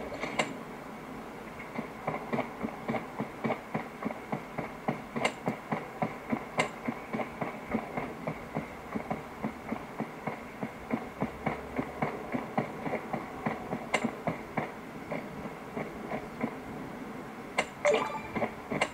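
Quick, even footsteps from a mobile game patter through a small phone speaker.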